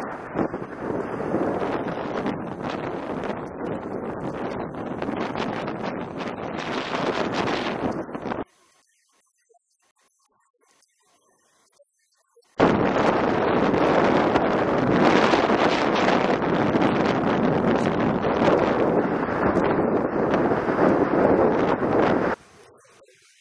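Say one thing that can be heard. Wind roars loudly past as a bike speeds downhill.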